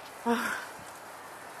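An elk gives a short, high call nearby.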